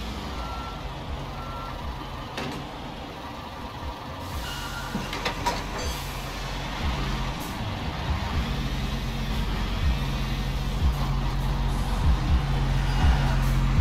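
A hydraulic crane arm whirs and clanks as it folds.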